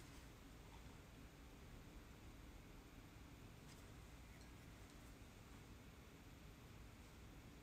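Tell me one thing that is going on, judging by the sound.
A metal tool scrapes lightly against dry clay.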